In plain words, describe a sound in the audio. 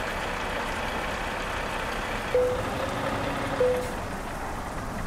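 A semi-truck's engine idles.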